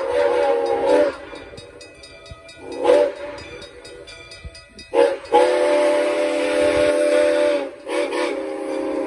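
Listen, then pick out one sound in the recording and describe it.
A steam locomotive chugs and puffs as it approaches.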